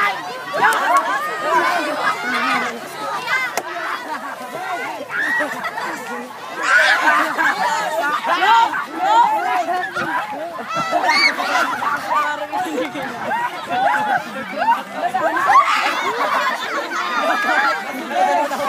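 A crowd of teenagers shouts and cheers outdoors.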